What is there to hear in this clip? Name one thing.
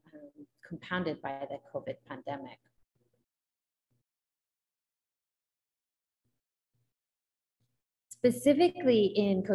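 A woman talks calmly through an online call microphone.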